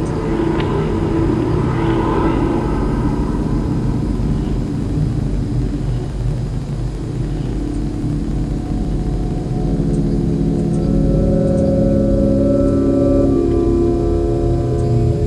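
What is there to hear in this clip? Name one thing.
Electronic music plays, with low droning tones that slowly shift.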